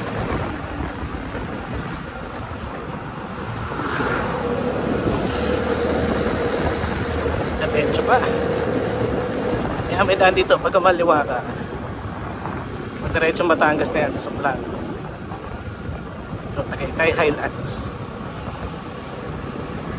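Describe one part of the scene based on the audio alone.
Wind rushes past the rider outdoors.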